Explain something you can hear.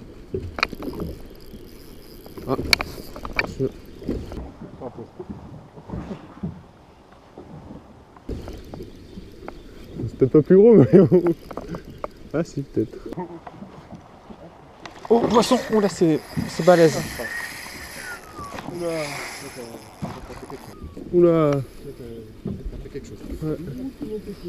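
A fishing reel clicks and whirs as its handle is wound.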